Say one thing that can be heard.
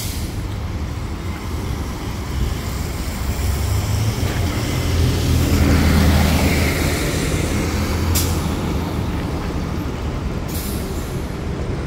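A bus engine rumbles closer and passes nearby.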